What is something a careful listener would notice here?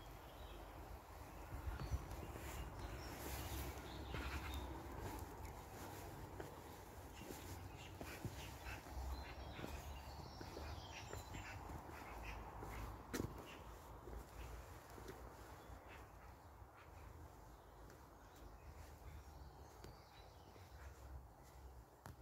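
Footsteps crunch steadily on a cobbled path outdoors.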